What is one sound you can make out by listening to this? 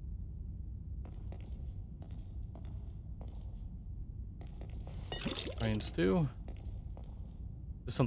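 Slow footsteps shuffle over a hard floor.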